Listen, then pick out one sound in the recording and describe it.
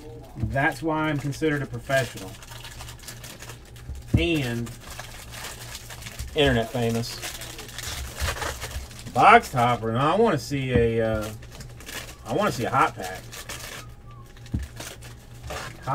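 Foil wrappers crinkle and tear.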